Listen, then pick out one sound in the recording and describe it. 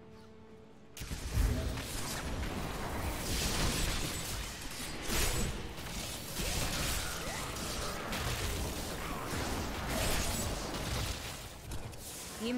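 Game spells crackle and blast as monsters are struck.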